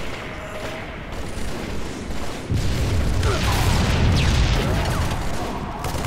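Guns fire in bursts.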